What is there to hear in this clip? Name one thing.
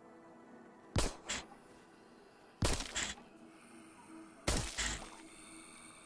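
Pistol shots crack one at a time.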